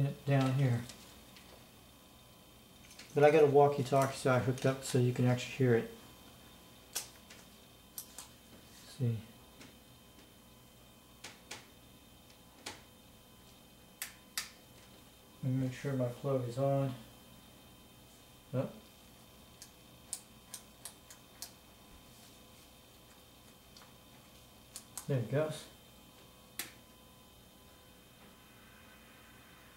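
Small clicks and taps sound as cables and knobs are handled on a box.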